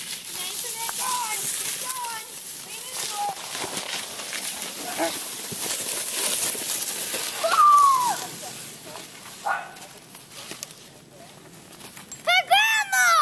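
A young child calls out and shrieks with excitement close by.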